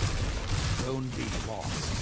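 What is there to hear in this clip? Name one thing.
Gunshots fire rapidly.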